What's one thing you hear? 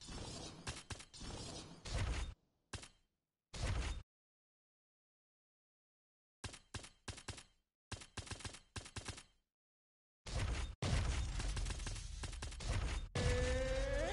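Short electronic menu clicks and whooshes sound in quick bursts.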